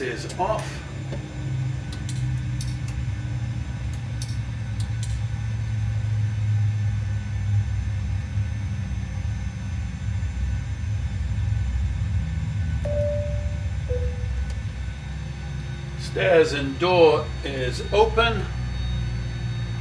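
A low, steady engine hum drones.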